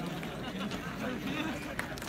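A man laughs nearby.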